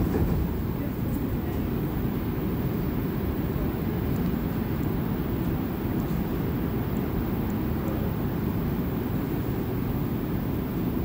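A subway train rumbles steadily as it runs along the track.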